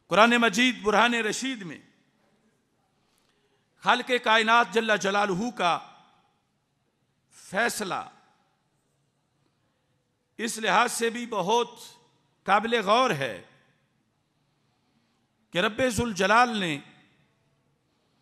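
A middle-aged man chants in phrases through a microphone, with pauses between them.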